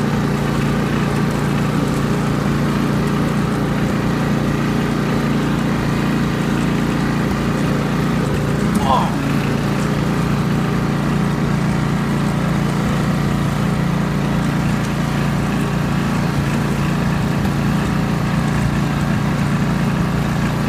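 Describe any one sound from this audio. A ride-on mower engine drones steadily up close.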